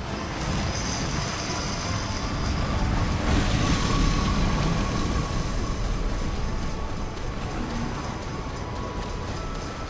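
Magical explosions crackle and roar loudly.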